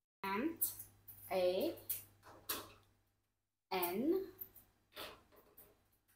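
A parrot's beak clacks on plastic toy pieces.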